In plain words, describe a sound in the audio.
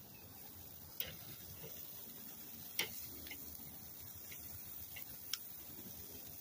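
Metal tongs clink against a grill grate.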